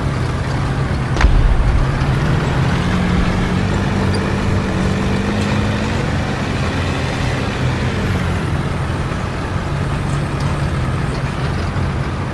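Tank tracks clank and squeak over the ground.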